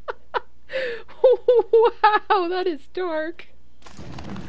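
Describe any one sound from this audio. A young woman laughs loudly into a close microphone.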